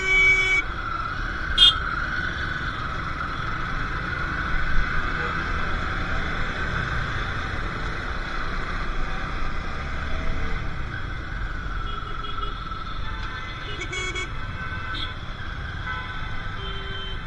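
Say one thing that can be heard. Auto-rickshaw and motorcycle engines rumble nearby in traffic.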